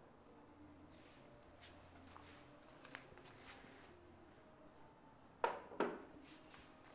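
Chess pieces rattle on a wooden board as it is lifted and carried.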